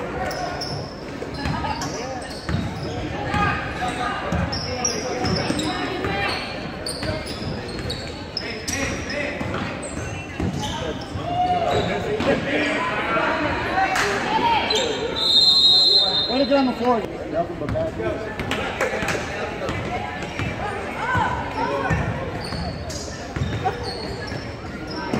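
Sneakers squeak on a wooden floor.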